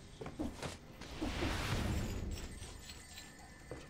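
A deep whoosh swells and fades as a game portal is used.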